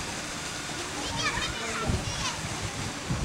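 Children's voices call out at a distance.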